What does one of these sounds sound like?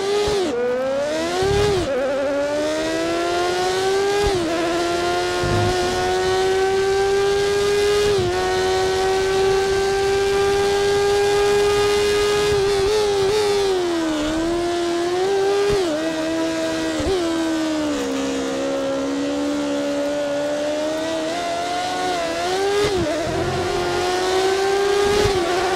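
A racing car engine screams at high revs, rising as it shifts up through the gears and dropping as it slows for corners.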